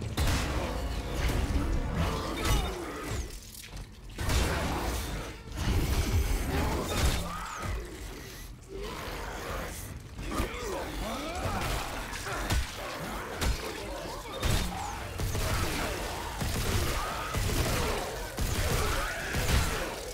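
Monsters growl and shriek.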